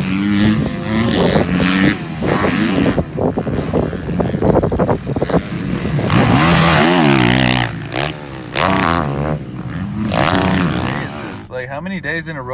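A dirt bike engine revs loudly up and down.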